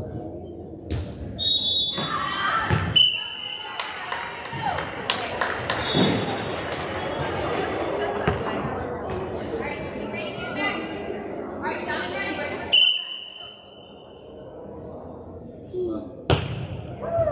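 A volleyball thumps as it is served and hit.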